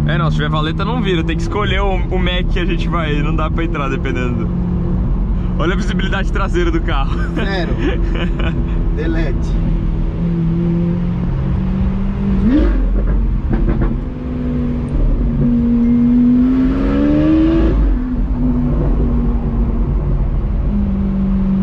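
A car engine hums loudly throughout.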